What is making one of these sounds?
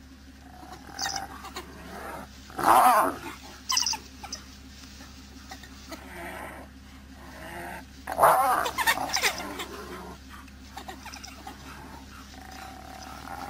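Wild dogs yelp and twitter in high calls.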